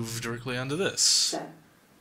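A woman speaks calmly, heard through a recording.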